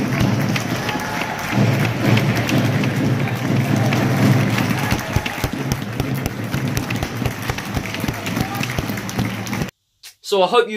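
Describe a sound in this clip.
A crowd cheers and claps loudly in a large echoing arena.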